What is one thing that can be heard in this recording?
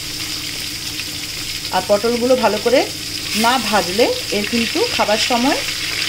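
Vegetable pieces drop into hot oil with a splash of sizzling.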